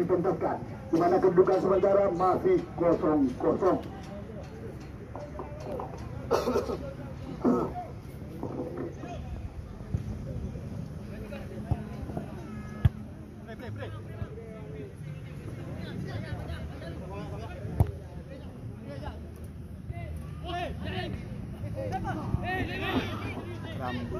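A crowd of spectators chatters and calls out at a distance outdoors.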